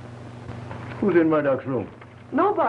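A man speaks clearly and calmly nearby.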